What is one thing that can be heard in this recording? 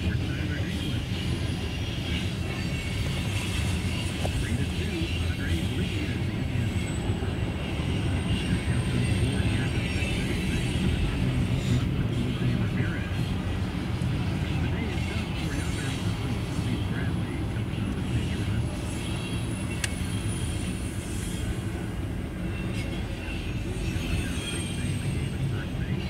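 Steel wheels squeal faintly on the rails.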